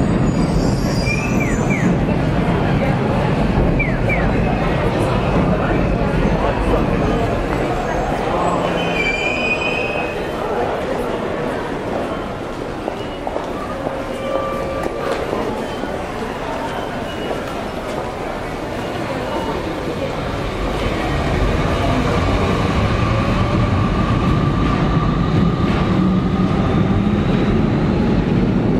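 Footsteps of a crowd shuffle on pavement.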